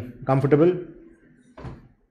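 A man speaks briefly close by, then pauses.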